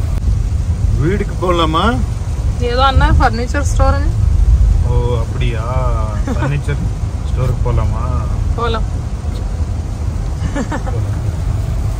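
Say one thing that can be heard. A man talks calmly nearby inside a car.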